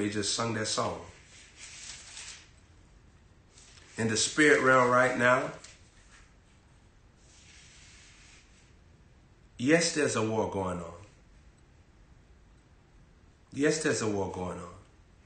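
A young man reads aloud in short bursts, close to a microphone.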